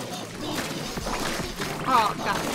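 A splashy blast bursts with a loud pop.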